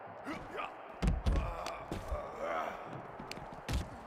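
Heavy body blows thud as two wrestlers grapple.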